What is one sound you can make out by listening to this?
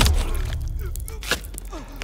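A man growls angrily up close.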